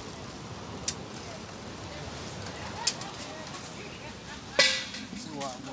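Metal trays clink and clatter.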